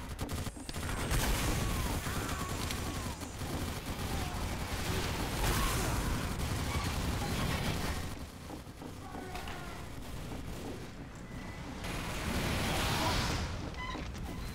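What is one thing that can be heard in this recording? Explosions boom in loud bursts.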